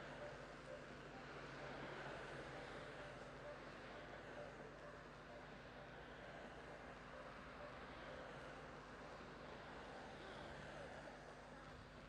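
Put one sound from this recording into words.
Inline skates roll and whir on asphalt as a pack of skaters glides past.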